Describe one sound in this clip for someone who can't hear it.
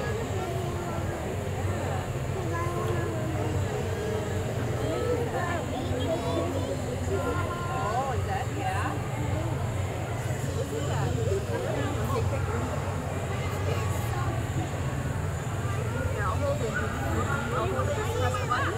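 A young woman speaks with animation through a microphone and loudspeaker.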